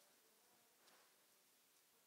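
Footsteps fall softly on a hard floor.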